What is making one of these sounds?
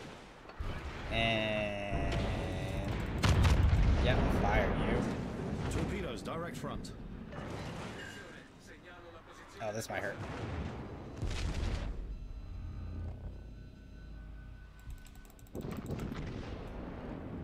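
Naval guns boom and shells explode.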